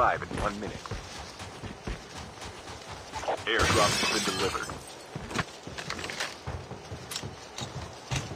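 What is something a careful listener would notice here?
Footsteps thud quickly across a floor.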